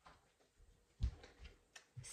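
A thick ring binder is set down on a table with a soft thud.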